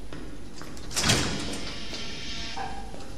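A heavy metal door creaks and bangs open.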